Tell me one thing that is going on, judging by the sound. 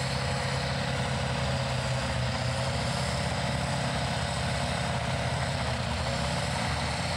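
A truck's engine idles with a loud, deep, steady rumble.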